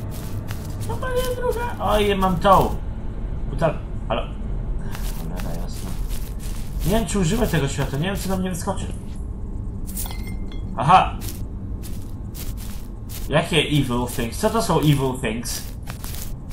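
A young man speaks with animation into a microphone, close up.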